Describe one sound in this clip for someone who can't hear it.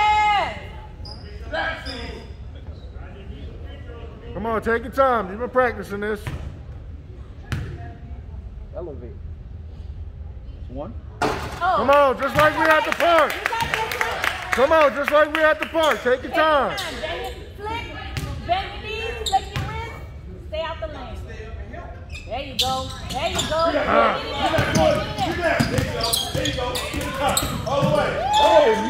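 People shout and cheer loudly in an echoing gym.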